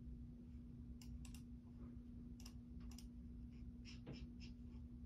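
Keys on a keyboard click softly as fingers press them.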